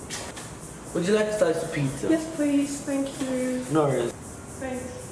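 A teenage boy speaks up close with animation.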